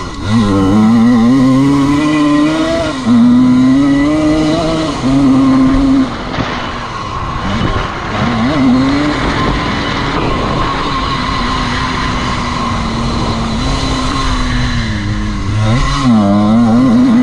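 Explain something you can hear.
A dirt bike engine revs hard up close, rising and falling as the rider shifts.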